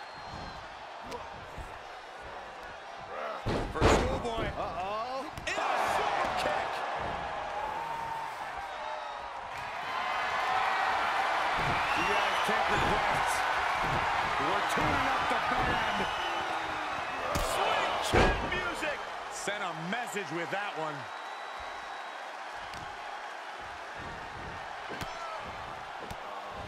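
A large crowd cheers loudly in a big arena.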